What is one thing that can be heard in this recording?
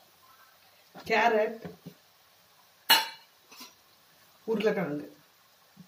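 Vegetables drop into a hot pan.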